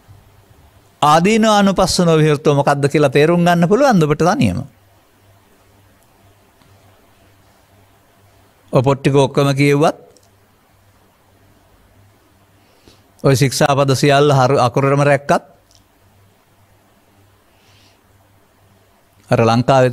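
An elderly man speaks calmly into a microphone, with long pauses.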